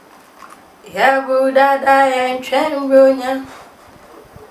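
A young woman sings out a loud drawn-out exclamation.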